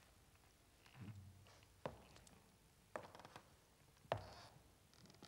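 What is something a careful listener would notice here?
Hard shoes knock on a wooden stage floor as a man walks.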